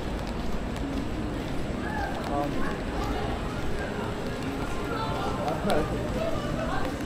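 Footsteps tap on wet pavement.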